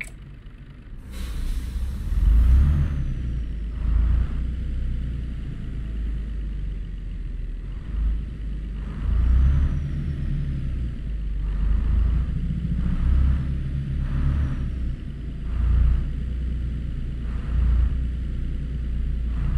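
A truck engine rumbles low and rises in surges as the truck pulls away.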